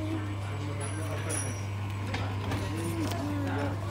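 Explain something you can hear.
A paper card slides out of a slot.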